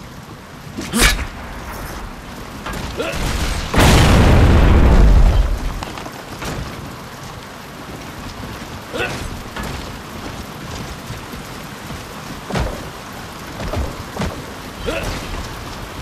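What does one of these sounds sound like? A gun fires sharp shots.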